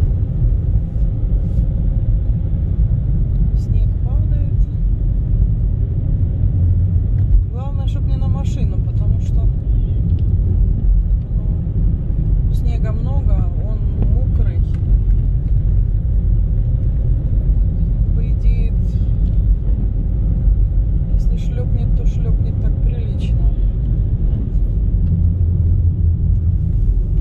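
A car engine hums and tyres rumble steadily on a snowy road.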